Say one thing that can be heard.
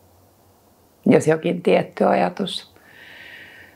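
A woman speaks softly and calmly, close to a microphone.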